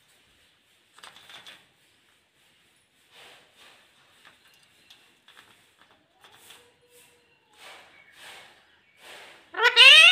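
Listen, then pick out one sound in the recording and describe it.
A parrot chatters and squawks softly.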